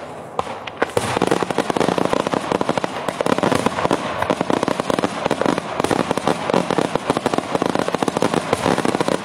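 Firecrackers crackle in a rapid, dense rattle.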